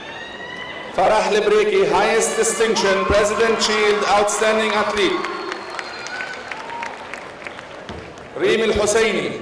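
A man reads out through a loudspeaker in a large echoing hall.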